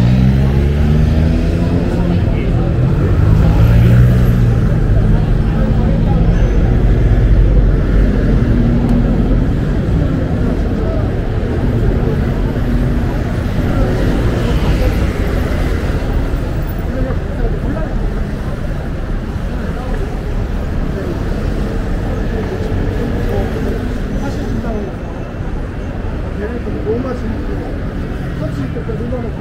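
Several men and women chat in a low murmur outdoors.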